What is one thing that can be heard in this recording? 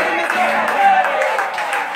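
A person claps hands close by.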